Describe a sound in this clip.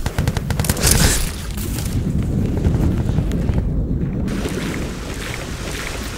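Water splashes and gurgles.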